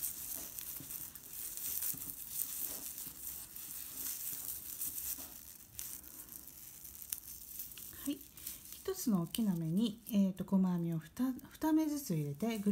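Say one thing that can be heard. A crochet hook rustles and scrapes softly through stiff raffia yarn.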